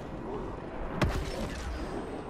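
A laser gun fires with a sharp blast.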